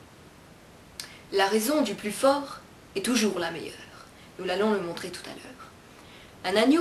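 A young woman recites a story with expression, close to the microphone.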